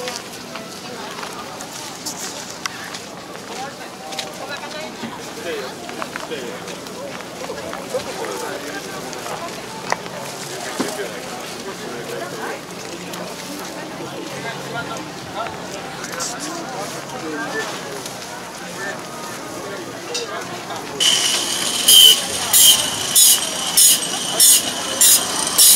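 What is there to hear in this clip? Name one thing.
A crowd of adults murmurs and chats outdoors.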